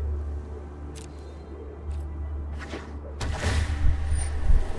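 A card game's sound effects swoosh and chime as cards are played.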